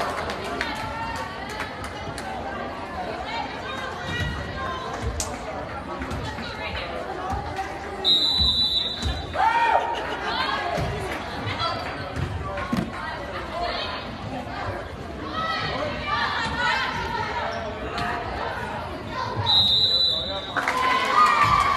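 Girls shout to one another on the court.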